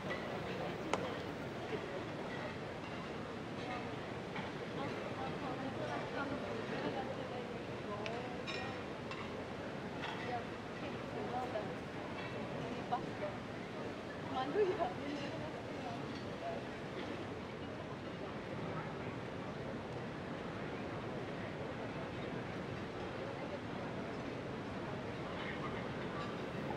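An orchestra plays steadily in a large echoing hall.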